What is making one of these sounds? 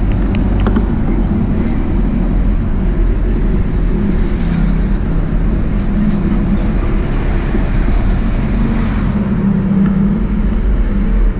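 A motorbike engine hums steadily up close.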